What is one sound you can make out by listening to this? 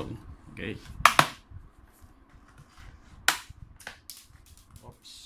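A plastic cover clicks and snaps as it is pried loose.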